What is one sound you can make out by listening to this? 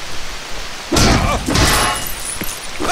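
Plastic pieces burst apart with a loud crash.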